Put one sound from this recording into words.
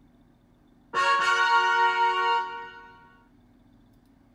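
A bright, cheerful chime rings out and fades.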